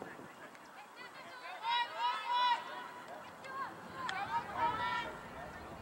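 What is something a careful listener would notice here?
Young girls shout to each other across an open field outdoors.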